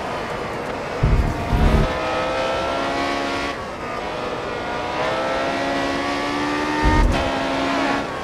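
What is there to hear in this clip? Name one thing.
Low thumps rumble as a racing car runs over kerbs.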